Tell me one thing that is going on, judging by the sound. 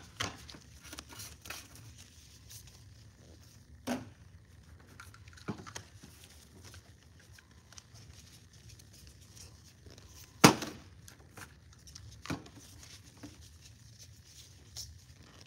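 Plastic caps click as they are twisted onto bottles.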